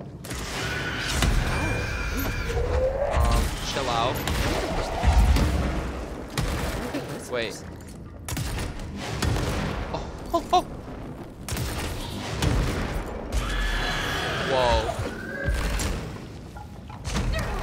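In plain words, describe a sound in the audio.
Explosions boom and debris crashes.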